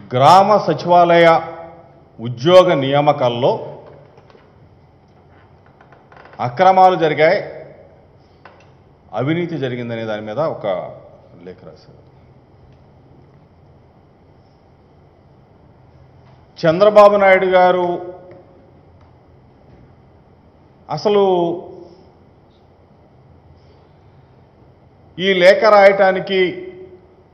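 A middle-aged man speaks calmly into a microphone in short bursts with pauses.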